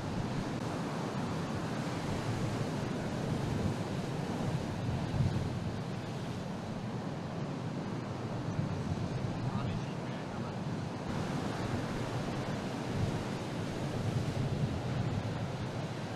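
Rough surf crashes and roars steadily against a rocky shore.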